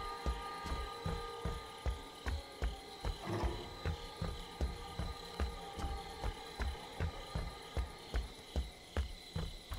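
Heavy footsteps thud on wooden boards at a quick, steady pace.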